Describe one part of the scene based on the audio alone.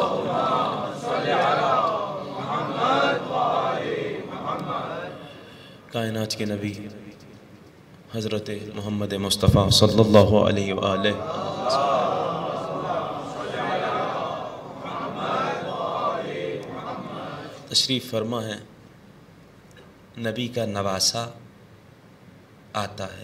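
A man speaks with feeling into a microphone, in a reverberant hall.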